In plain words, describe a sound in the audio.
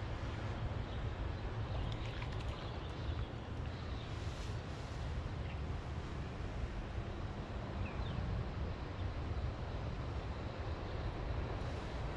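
Wind blows steadily outdoors, rumbling low and rustling tall grass.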